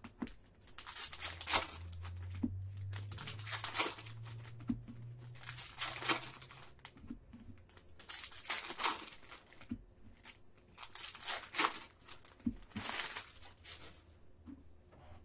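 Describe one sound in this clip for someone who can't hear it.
Foil wrappers crinkle and tear in bursts close by.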